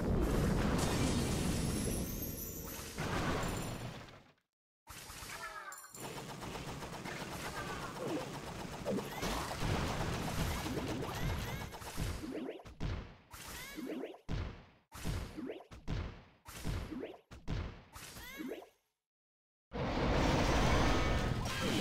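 Battle sound effects of blasts and clashes rumble on and off.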